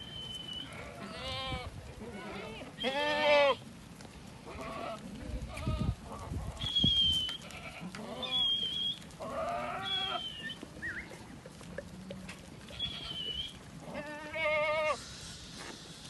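Goats bleat loudly nearby.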